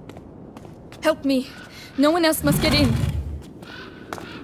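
A young woman calls out urgently.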